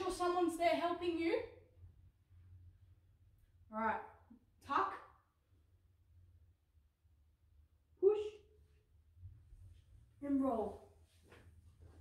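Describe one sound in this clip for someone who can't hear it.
A young girl speaks with animation, in short bursts.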